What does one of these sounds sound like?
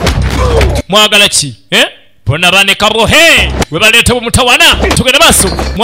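Blows thud as men scuffle and grapple.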